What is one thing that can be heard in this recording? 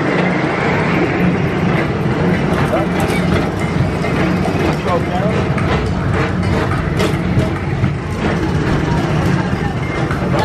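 A ride vehicle hums and rumbles steadily along its track.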